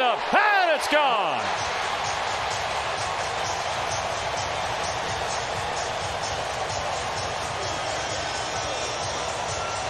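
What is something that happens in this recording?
A large stadium crowd cheers and roars loudly.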